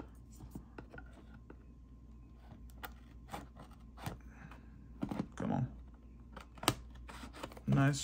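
A knife blade slices through plastic wrap with short scratchy strokes.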